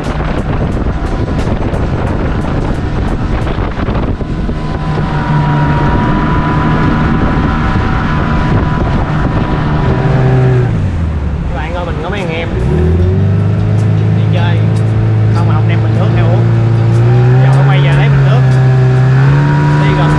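A boat motor hums steadily, dropping and rising in pitch partway through.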